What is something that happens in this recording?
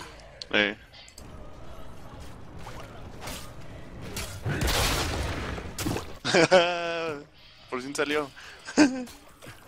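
Game spell effects whoosh and clash during a fight.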